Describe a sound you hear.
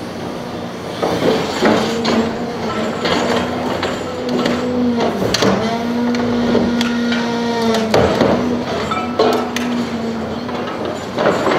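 A hydraulic shear crunches and scrapes through scrap metal.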